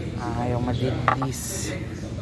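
A glass jar clinks against a shelf as it is picked up.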